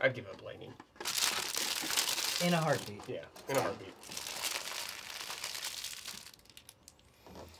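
Plastic packaging crinkles and rustles.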